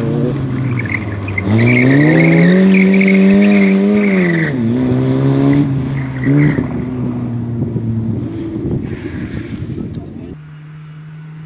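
A small car engine revs hard and loud.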